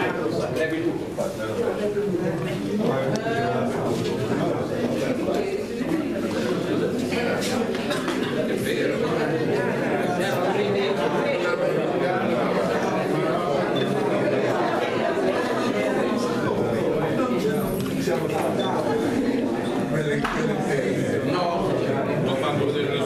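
A crowd of men and women chatter loudly all around in a busy room.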